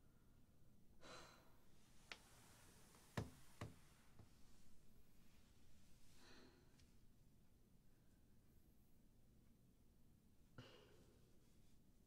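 A young woman sighs and sobs quietly close by.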